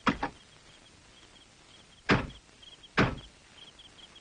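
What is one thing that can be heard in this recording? A car door slams shut with a thud.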